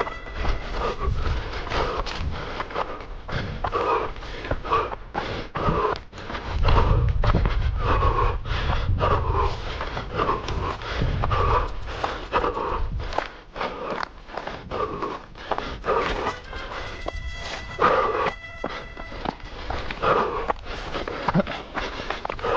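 Footsteps run quickly over dry, stony ground.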